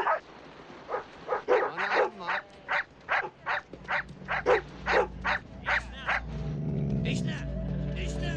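A dog barks repeatedly.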